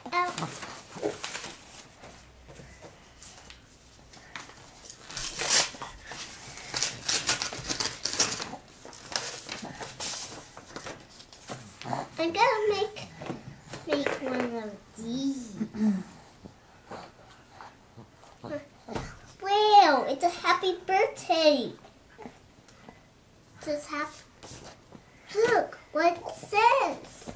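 A young girl talks nearby in a high voice.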